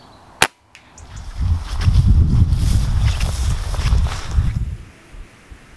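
Footsteps crunch and rustle through dense undergrowth close by.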